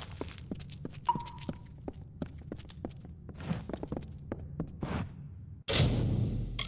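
Footsteps run quickly across a stone floor, echoing in a large hall.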